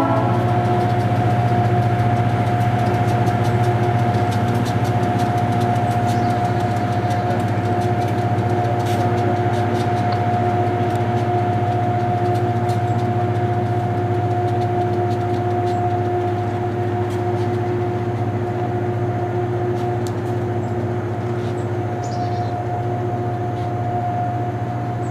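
Steel wheels click and squeal on the rails.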